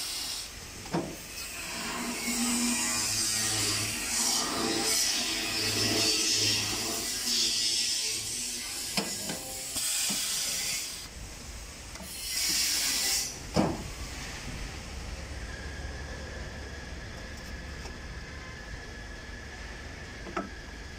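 A metal bending machine clamps and bends sheet metal with loud clanks.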